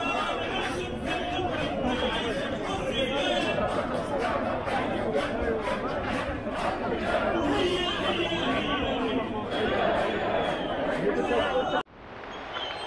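A large crowd chants loudly and rhythmically outdoors, close by.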